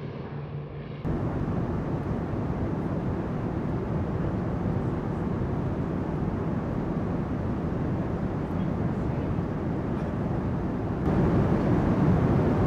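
Propeller engines roar steadily and closely in flight.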